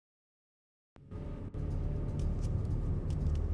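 Footsteps patter quickly.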